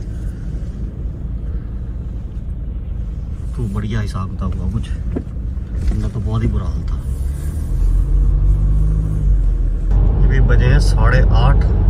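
A car drives along a road, heard from inside with a low rumble.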